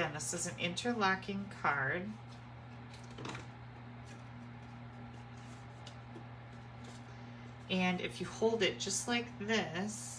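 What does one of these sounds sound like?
Card stock rustles and scrapes as it is folded and handled.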